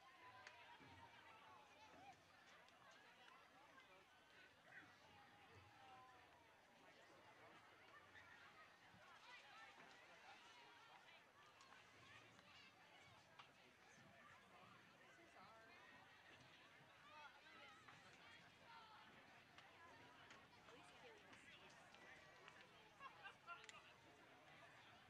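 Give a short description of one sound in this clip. Young women on a field call out to one another in the distance.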